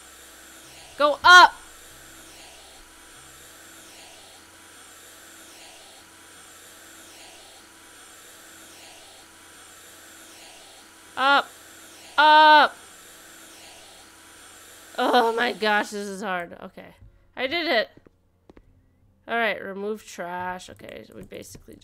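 A young woman talks and exclaims with animation into a close microphone.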